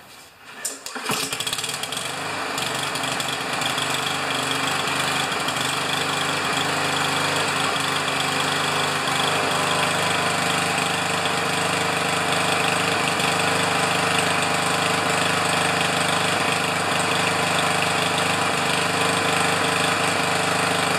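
A small lawn mower engine starts and runs with a steady drone.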